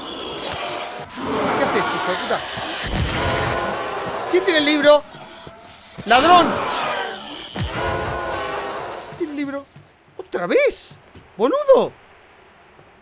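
A young man talks and exclaims with animation into a close microphone.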